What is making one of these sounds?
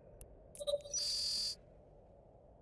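An electronic alert tone beeps briefly.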